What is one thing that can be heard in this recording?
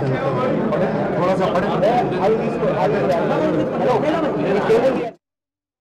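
A crowd of men talk loudly over one another close by.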